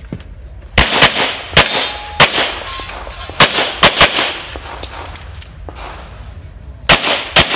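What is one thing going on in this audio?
Pistol shots crack outdoors in quick bursts.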